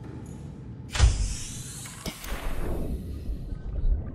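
A hatch hisses open and water splashes loudly.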